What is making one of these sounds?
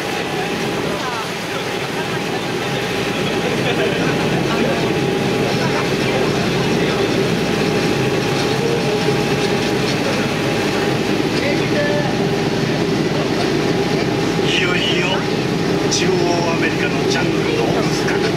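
A small train engine chugs and rumbles steadily.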